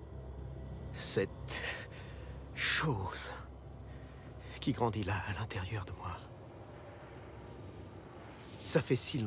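A middle-aged man speaks quietly and tensely, close by.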